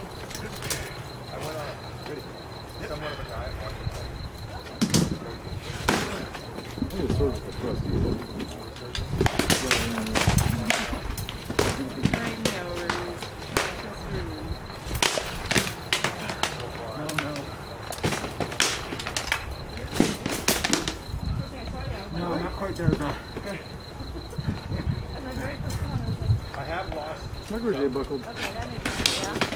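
Swords clash and bang against shields in sharp, irregular knocks.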